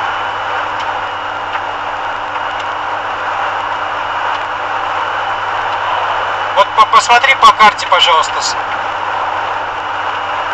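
A car drives steadily along a road, with engine hum and tyre noise heard from inside.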